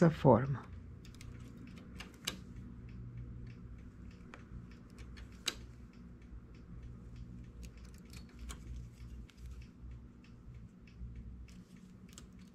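Metal needles click softly as stitches are moved by hand.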